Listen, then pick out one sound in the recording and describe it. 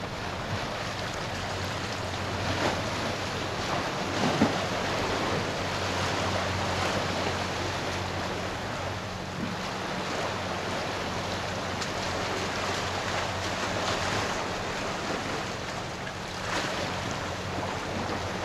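Water laps gently against a rocky shore.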